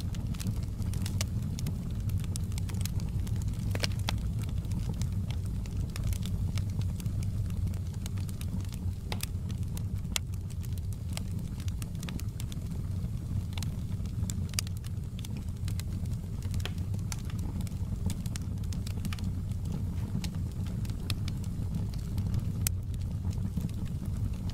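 Burning logs crackle and pop.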